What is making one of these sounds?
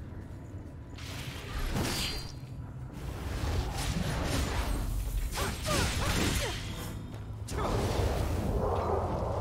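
A blade slashes and strikes a creature with heavy impacts.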